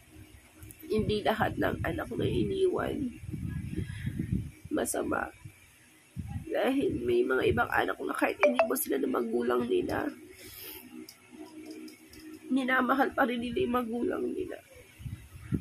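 A woman speaks tearfully and close up, her voice breaking as she cries.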